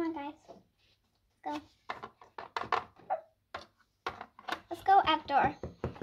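Small plastic toys knock and clatter as hands move them.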